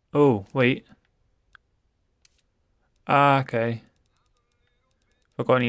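A young man speaks with animation close to a microphone, in short bursts.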